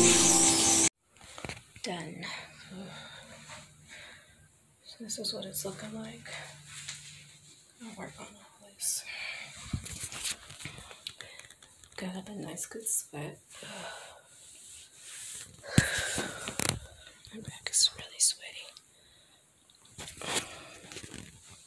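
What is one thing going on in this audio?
A woman speaks up close, calmly and with animation.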